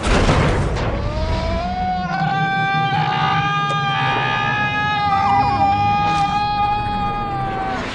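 A man screams loudly in terror.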